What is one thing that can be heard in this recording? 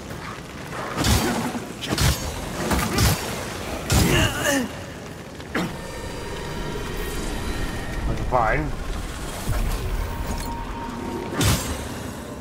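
Sword blows clang and thud in quick bursts.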